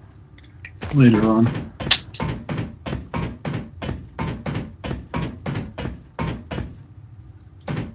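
Footsteps clang quickly up metal stairs.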